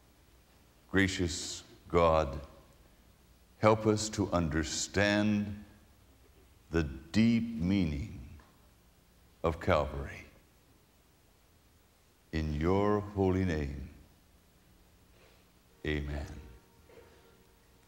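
A middle-aged man speaks slowly and solemnly into a microphone.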